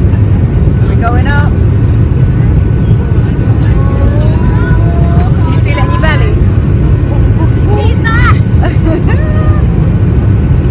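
A little girl talks in a high voice close by.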